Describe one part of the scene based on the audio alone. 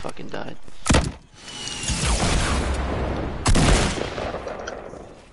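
An explosion booms with a loud blast.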